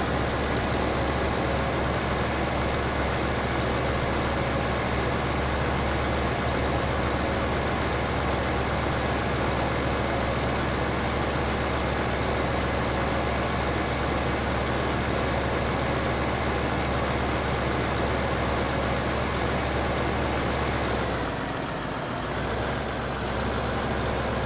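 A tractor engine rumbles steadily as it drives along.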